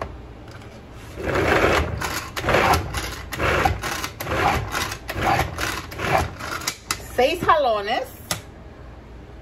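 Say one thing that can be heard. A hand-pulled food chopper whirs and rattles in repeated bursts.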